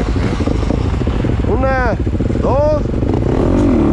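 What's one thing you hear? A second dirt bike engine idles nearby.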